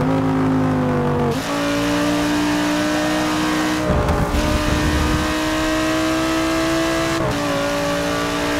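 A racing car engine roars at high revs, shifting gears with brief drops in pitch.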